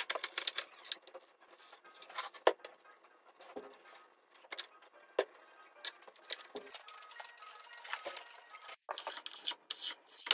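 Wooden boards knock and clatter as they are handled.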